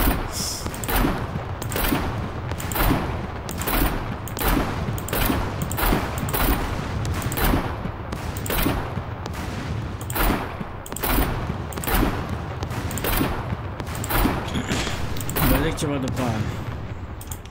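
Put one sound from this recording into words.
A heavy machine gun fires single shots about once a second.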